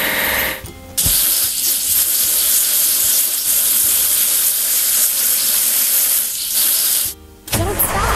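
Water sprays in a steady hissing jet.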